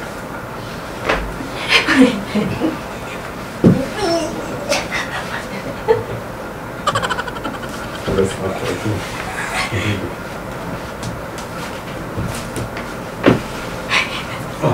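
A young woman laughs and squeals up close.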